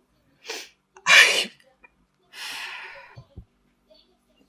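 A woman sighs heavily.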